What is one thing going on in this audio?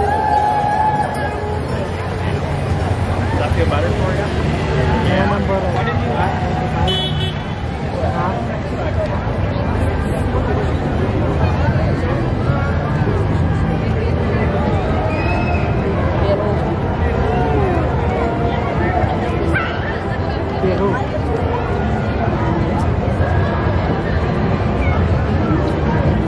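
A large outdoor crowd chatters and cheers along a street.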